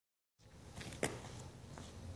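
A light thud as something is set down on a mat.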